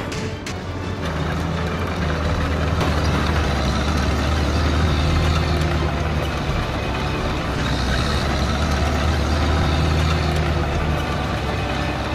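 A heavy armored vehicle engine rumbles loudly as it drives close by.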